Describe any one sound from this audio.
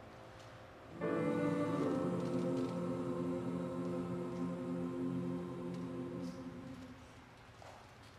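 A choir sings a long, held final chord in a large hall.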